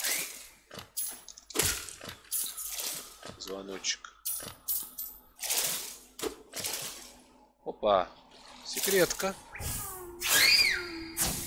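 Sharp swishing and thudding video game sound effects play.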